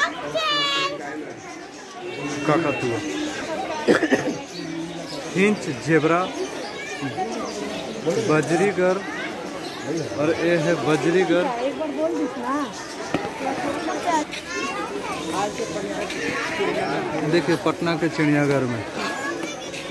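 Many small birds chirp and chatter busily nearby.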